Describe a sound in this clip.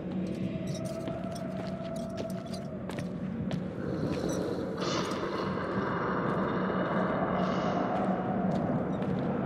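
Footsteps scuff slowly across a hard floor.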